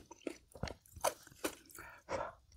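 Chopsticks clink against a bowl.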